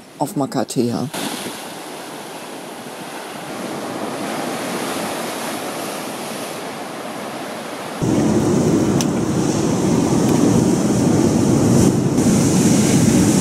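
Waves crash and surge against rocks close by.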